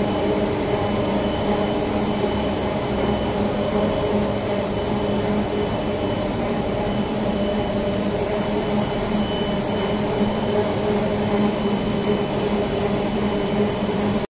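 Wire-winding machines hum and whir steadily in a loud, echoing hall.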